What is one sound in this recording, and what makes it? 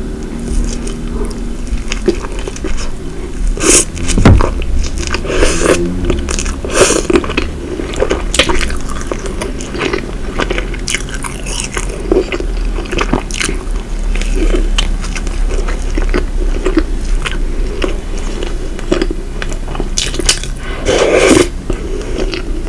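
A woman bites into flaky pastry with crisp crunches close to a microphone.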